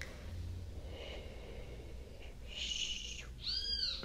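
A young woman makes a soft shushing sound close to a microphone.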